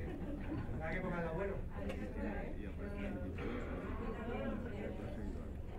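A crowd of people chatters and talks nearby.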